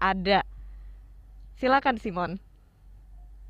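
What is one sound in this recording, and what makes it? A woman speaks briefly through a microphone over an online call.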